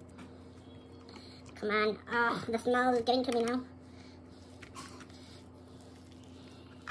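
Hands squish and pull at raw chicken skin.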